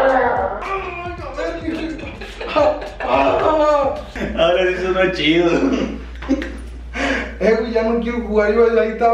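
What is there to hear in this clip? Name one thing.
A young man laughs loudly and uncontrollably nearby.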